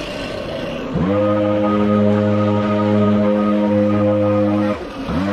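A leaf blower engine roars steadily up close, then cuts out.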